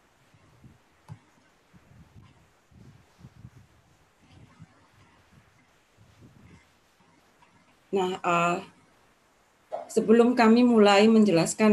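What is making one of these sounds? A woman speaks softly over an online call.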